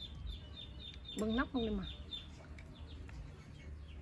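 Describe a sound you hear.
A spoon clinks against a glass as it stirs.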